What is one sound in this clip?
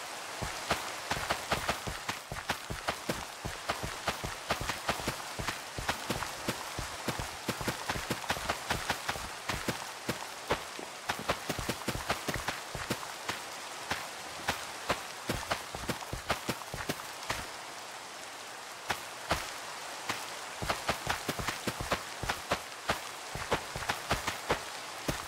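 Seeds are planted in soil with quick, soft popping clicks.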